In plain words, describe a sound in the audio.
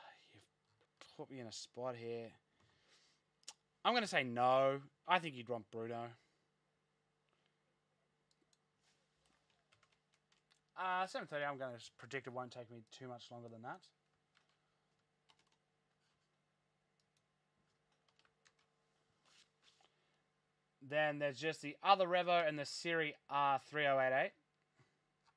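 A young man talks calmly and close into a microphone, in short bursts with pauses.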